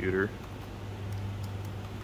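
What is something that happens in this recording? Fingers tap on a computer keyboard.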